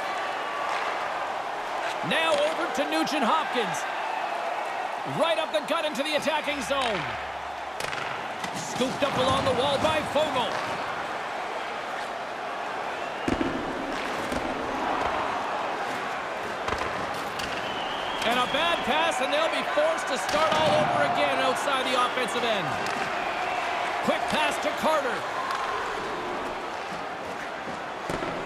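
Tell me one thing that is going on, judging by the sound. A large arena crowd murmurs steadily.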